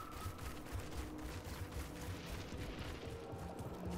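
Heavy footsteps thud across sand.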